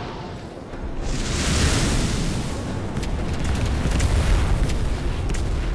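A magical blast bursts with a loud whooshing roar.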